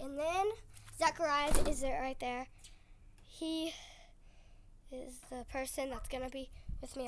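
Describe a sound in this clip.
A young child calls out loudly nearby outdoors.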